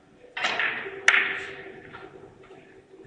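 Billiard balls knock together with sharp clicks.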